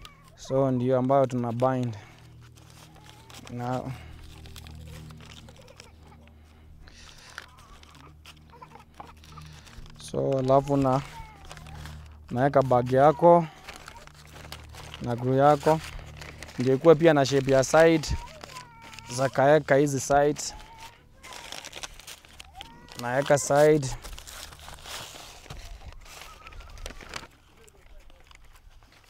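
Paper crinkles and rustles as it is folded and pressed flat.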